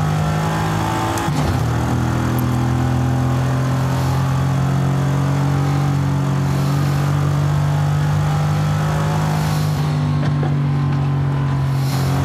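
A car engine hums steadily at high speed, shifting up once.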